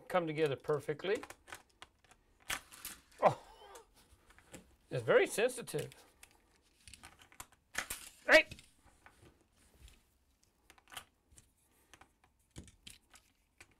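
Plastic toy pieces click and clack as they are handled.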